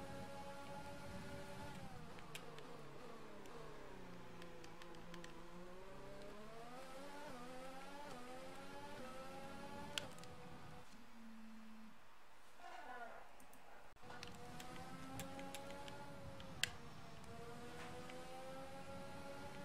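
A racing car engine screams, dropping and rising in pitch as it shifts gears.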